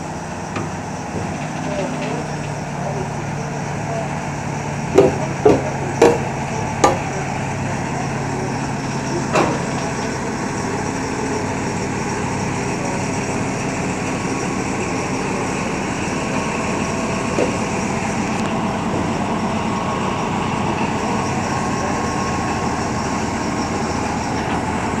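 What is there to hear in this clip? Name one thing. A diesel locomotive engine idles nearby with a low, steady rumble.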